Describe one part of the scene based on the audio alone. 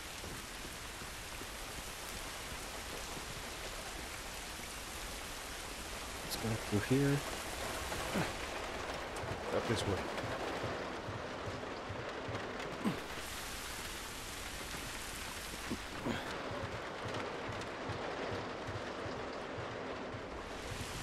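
Footsteps crunch slowly over rough ground.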